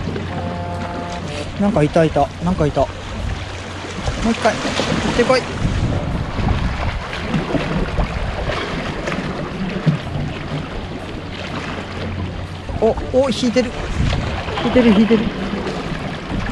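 Small waves lap and splash against rocks.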